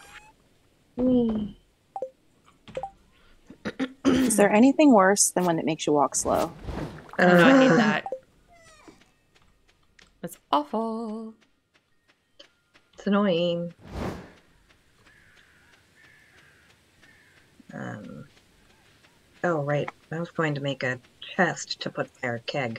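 A young woman talks casually into a close microphone, in bursts with pauses.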